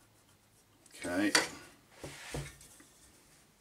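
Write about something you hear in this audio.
A metal ruler slides and knocks against a table.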